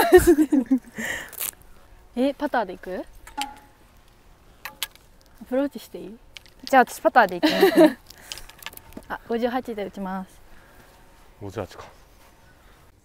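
Young women talk and chat outdoors.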